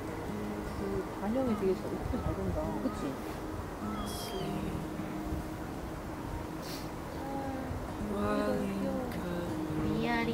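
A young woman talks softly nearby, outdoors.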